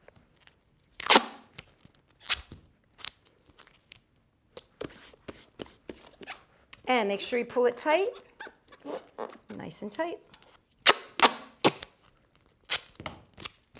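Tape rips and crackles as it is pulled off a roll.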